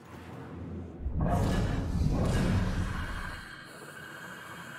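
A ghostly rushing whoosh swells and fades.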